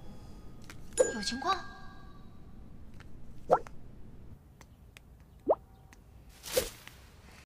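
A phone gives short message chimes.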